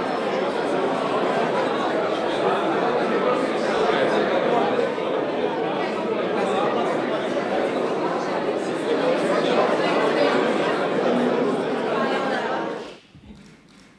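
A crowd of men and women chatter loudly in an echoing hall.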